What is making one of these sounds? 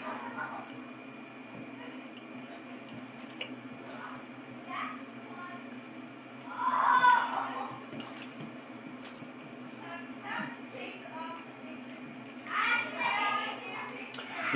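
Water splashes and sloshes gently in a bathtub.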